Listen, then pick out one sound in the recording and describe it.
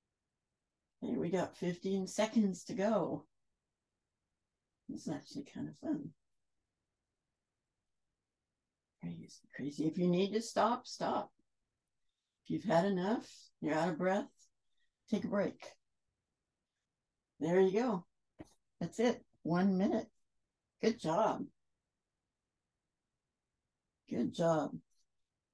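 A woman speaks calmly into a close microphone, in short phrases with pauses.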